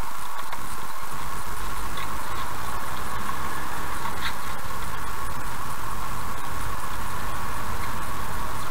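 A car's engine hums low and steady as the car pulls away.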